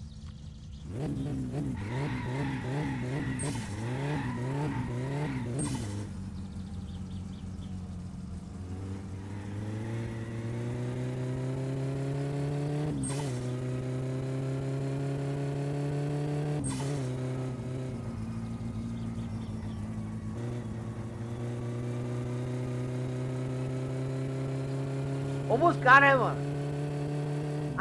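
A car engine revs up and climbs through the gears.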